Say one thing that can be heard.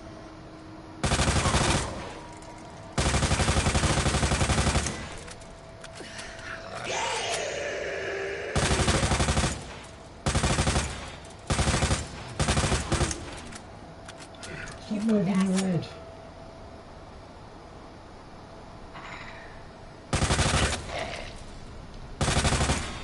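Automatic gunfire rattles in loud, sharp bursts.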